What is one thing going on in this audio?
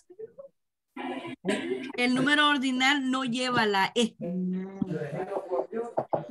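A woman speaks slowly and clearly over an online call.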